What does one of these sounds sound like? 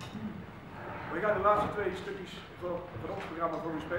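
A man speaks calmly to an audience in a large echoing hall.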